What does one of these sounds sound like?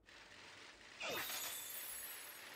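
A bicycle bursts into speed with a sharp whoosh.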